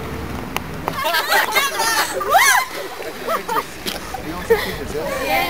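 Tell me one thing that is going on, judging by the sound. Teenage girls laugh and shriek excitedly close by.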